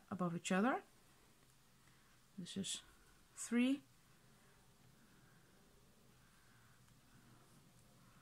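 Yarn rustles softly as a crochet hook pulls it through loops.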